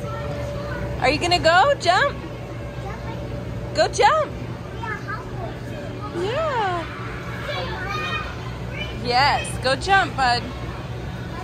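A toddler squeals and babbles excitedly nearby.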